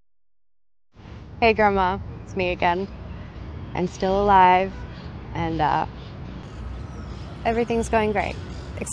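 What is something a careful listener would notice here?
A young woman talks cheerfully on a phone up close.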